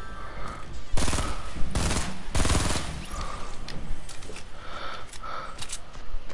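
Shotgun blasts ring out.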